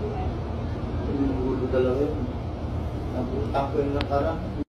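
A man talks nearby in a low, calm voice.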